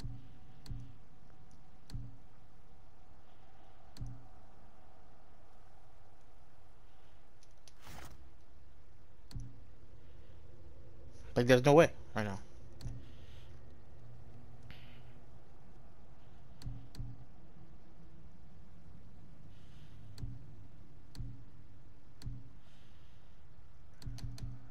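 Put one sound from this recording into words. Soft menu clicks tick now and then as selections change.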